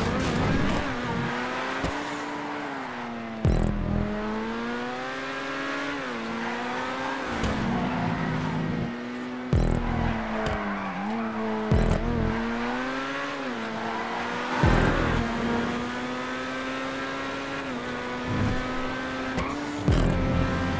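A racing car engine roars steadily, its pitch rising and falling with each gear change.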